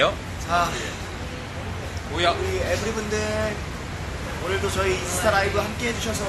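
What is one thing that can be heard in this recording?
Several young men talk and laugh nearby.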